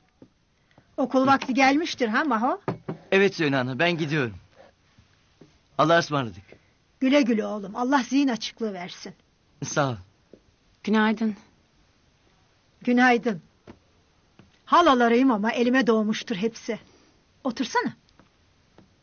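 An elderly woman speaks calmly.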